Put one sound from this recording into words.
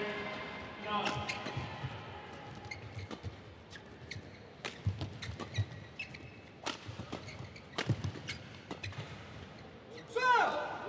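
Rackets smack a shuttlecock in a fast rally.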